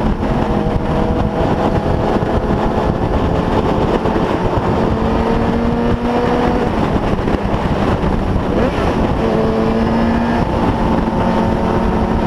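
A motorcycle engine hums steadily close by as the bike rides along.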